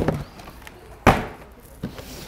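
A box lid thumps shut.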